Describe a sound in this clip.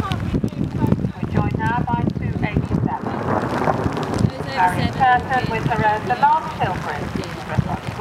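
A horse's hooves thud on grass at a canter.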